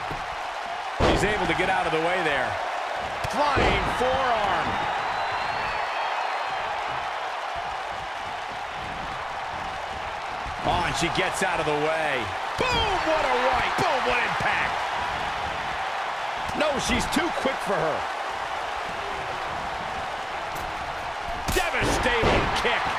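Bodies slam heavily onto a wrestling mat.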